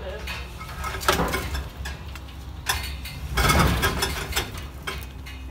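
A rusty metal car body clanks and knocks as it is turned on a stand.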